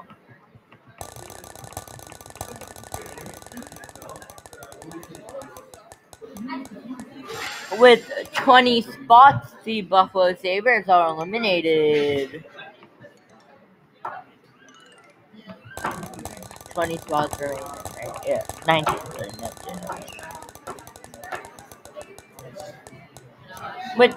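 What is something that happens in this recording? A spinning prize wheel ticks rapidly, then slows.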